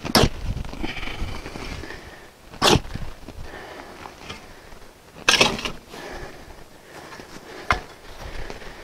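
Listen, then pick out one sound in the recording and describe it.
A shovel scrapes and chops into dirt.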